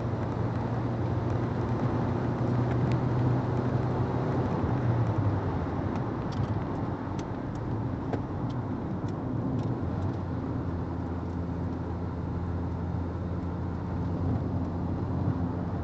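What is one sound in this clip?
Tyres roar on a paved track.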